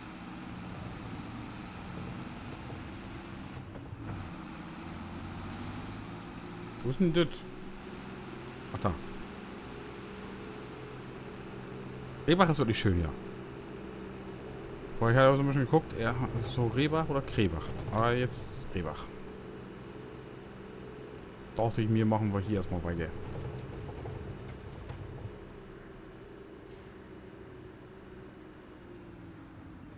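A tractor engine hums steadily as the tractor drives along.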